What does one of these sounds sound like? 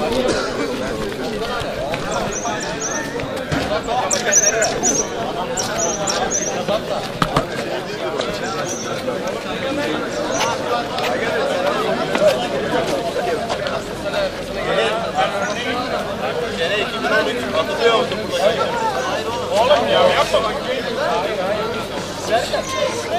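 A crowd of young men chatter and talk over one another nearby, outdoors.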